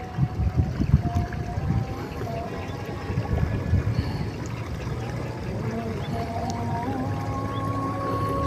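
Water drips and splashes softly from a fishing net.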